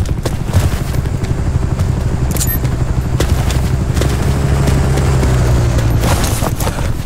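A helicopter's rotor thumps and drones overhead.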